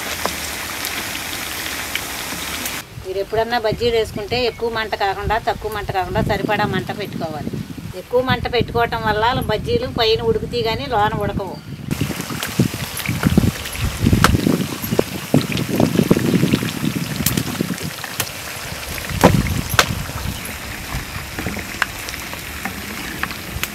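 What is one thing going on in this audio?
Oil sizzles and bubbles as food fries.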